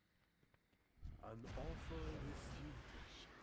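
Weapon blows strike a creature.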